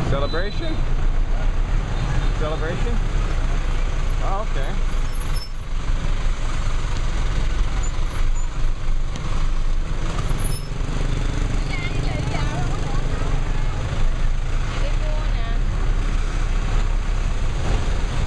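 Motorbike engines hum and buzz past on a busy street.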